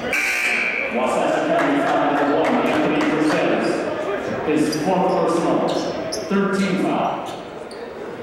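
Young men shout and call out across a large echoing hall.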